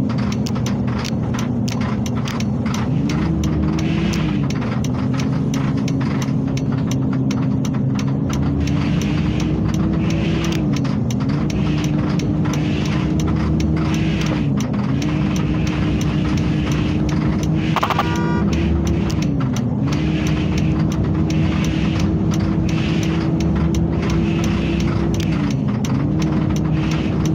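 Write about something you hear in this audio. A bus engine drones steadily, rising in pitch and dropping back at each gear change.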